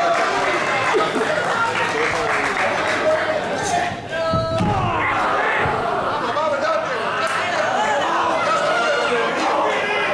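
A crowd cheers and chants loudly in an echoing hall.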